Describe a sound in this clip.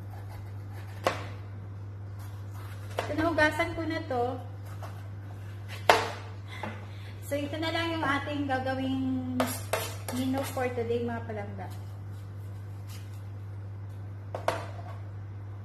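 A knife taps and chops on a cutting board.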